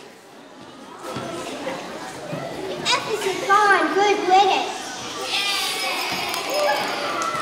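Young children sing into microphones in an echoing hall.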